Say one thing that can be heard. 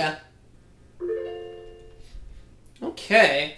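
A video game plays a short bright chime through a loudspeaker.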